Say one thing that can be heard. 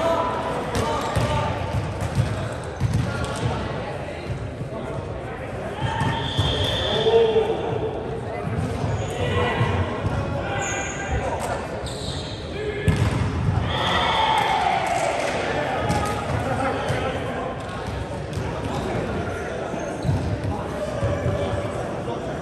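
Young men chat and call out nearby in a large echoing hall.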